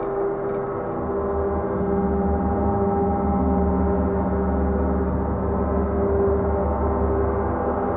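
A deep gong swells louder as a mallet rubs it.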